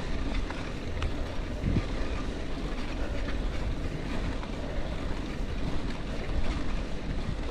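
A bicycle frame rattles and clicks over bumps.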